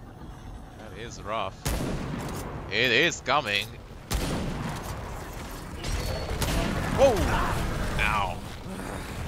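A young man talks and exclaims with animation into a close microphone.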